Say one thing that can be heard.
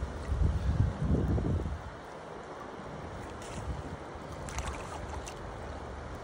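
Water splashes as a large fish is released.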